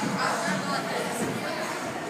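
Bare feet thud on a padded floor during a run.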